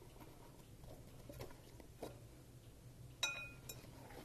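Dough squishes softly as hands knead it.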